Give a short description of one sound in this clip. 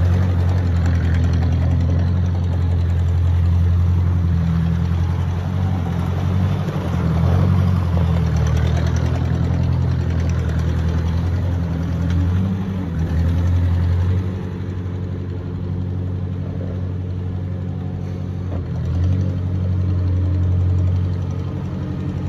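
An old tractor engine chugs steadily close by, rising and falling as it drives in circles.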